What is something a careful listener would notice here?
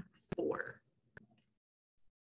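Calculator buttons click under a finger.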